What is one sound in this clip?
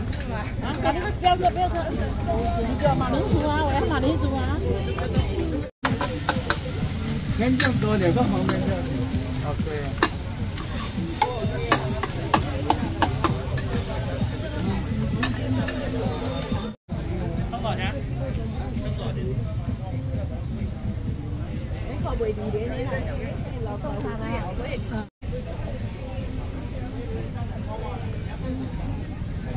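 People chatter nearby in a busy outdoor crowd.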